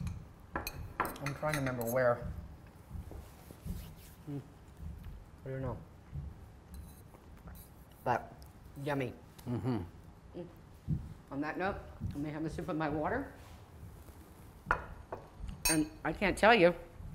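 A woman talks with animation close by.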